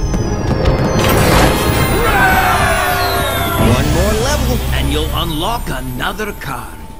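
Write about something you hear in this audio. A triumphant game fanfare plays with bright chimes.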